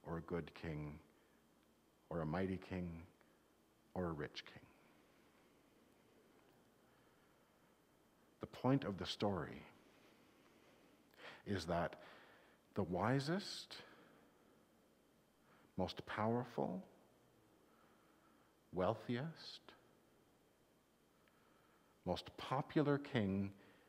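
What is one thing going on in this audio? A middle-aged man speaks calmly through a mask, in short phrases with pauses.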